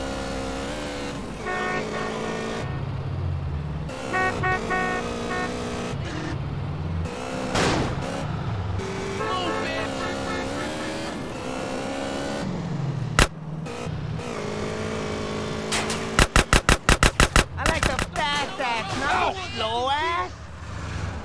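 A motorbike engine revs and roars steadily.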